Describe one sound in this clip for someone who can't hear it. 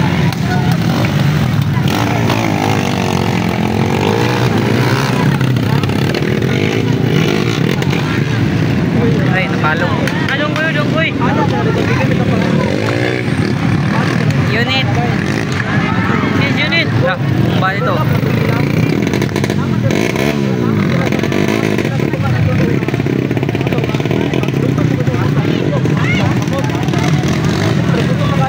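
Dirt bike engines rev and roar nearby.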